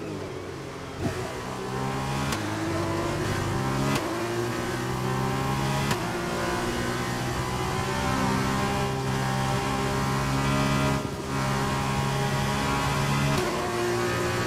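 A racing car's gears shift with sharp clicks.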